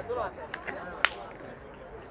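Metal boules clack against each other on the ground.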